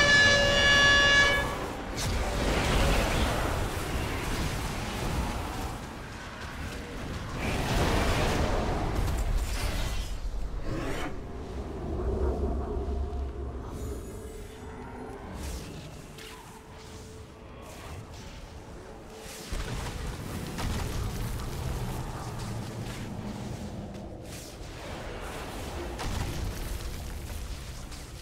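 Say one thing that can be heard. Magic spells crackle and boom during a fight.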